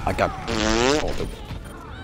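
A video game plays a short, wavering electronic tone.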